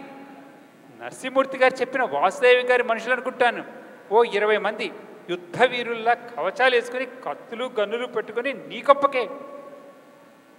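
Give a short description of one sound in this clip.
A man speaks with animation through loudspeakers in an echoing hall.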